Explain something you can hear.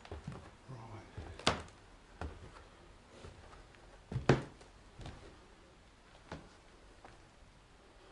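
Footsteps crunch over loose rubble and broken plaster.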